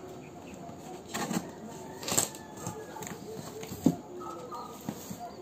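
Cardboard flaps rustle and scrape as a box is opened.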